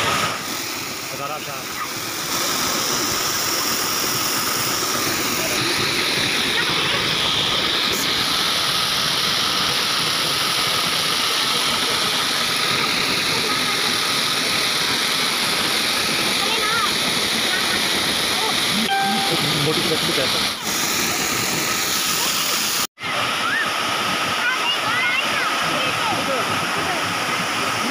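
A waterfall roars and splashes into a pool close by.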